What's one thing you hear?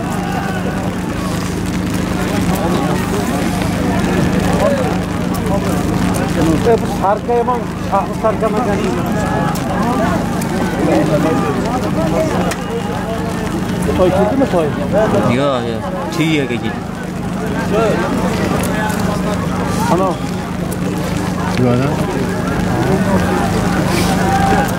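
A crowd of men shouts and calls from a distance outdoors.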